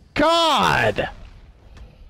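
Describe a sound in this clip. A heavy blow thuds.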